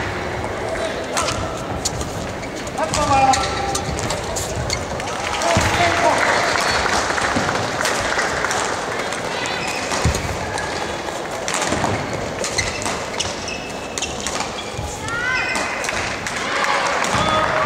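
Shoes squeak sharply on the court floor.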